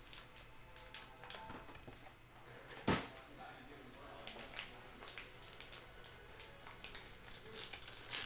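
Foil card packs crinkle and rustle in hands.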